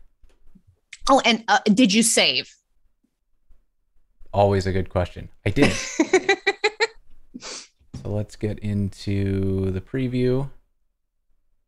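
A woman talks and laughs over an online call.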